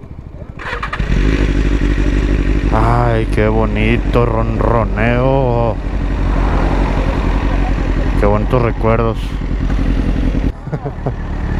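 A motorcycle engine idles with a low rumble.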